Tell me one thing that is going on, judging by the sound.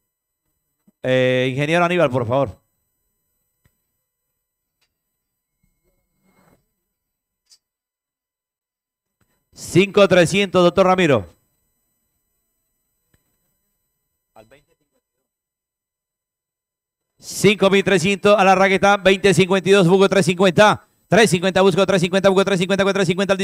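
A man calls out bids rapidly over a loudspeaker.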